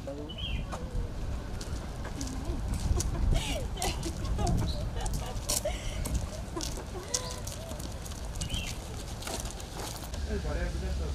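Young women talk and laugh together outdoors.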